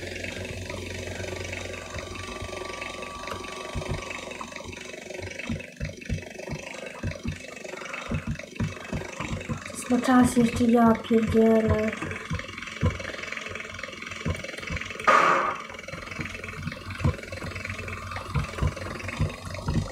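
A helicopter's rotor whirs steadily as it flies.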